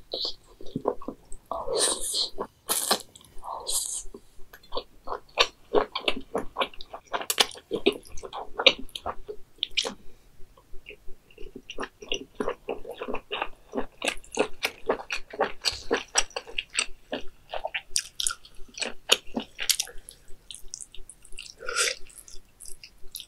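A young woman chews wet food with sticky, smacking sounds, close to a microphone.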